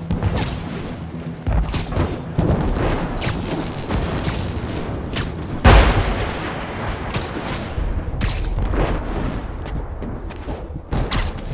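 Webs shoot out with sharp, quick zips again and again.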